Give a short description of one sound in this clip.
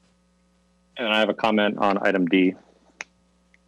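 A young man speaks briefly over an online call.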